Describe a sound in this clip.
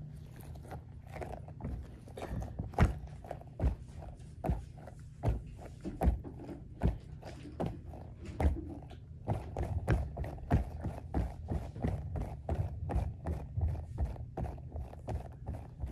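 A plush toy rustles and thumps on a fabric cushion.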